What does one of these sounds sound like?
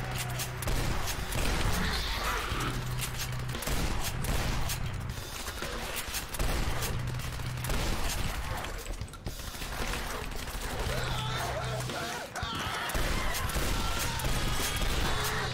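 Creatures snarl and screech.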